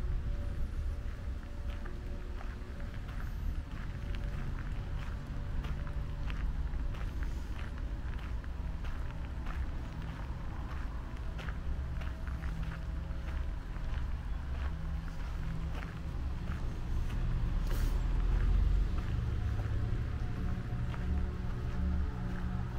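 Footsteps crunch steadily on a gravel path outdoors.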